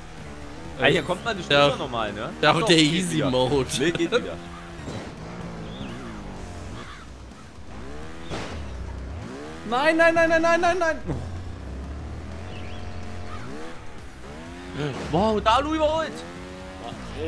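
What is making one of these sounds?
A motorbike engine revs up and down.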